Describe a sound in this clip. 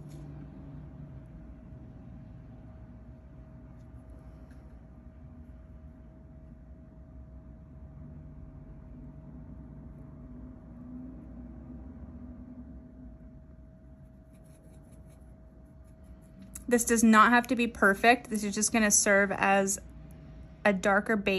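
A small brush strokes softly across a rough surface.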